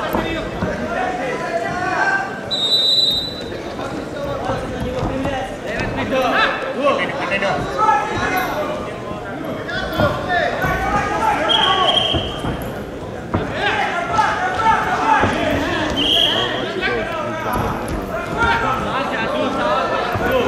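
A crowd in a large hall chatters and cheers throughout.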